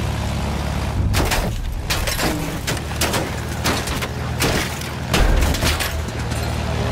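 Machine guns fire in short rattling bursts.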